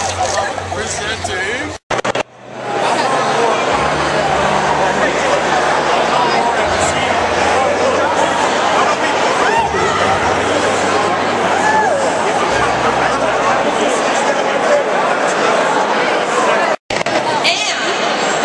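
A crowd of people chatters loudly all around.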